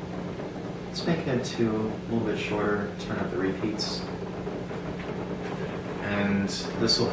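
A young man talks calmly to the listener.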